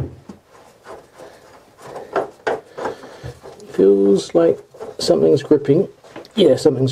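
A scraper scratches and rasps against a hard surface.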